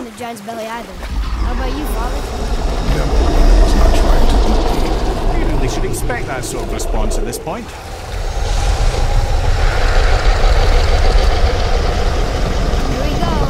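Water rushes and churns loudly around a boat.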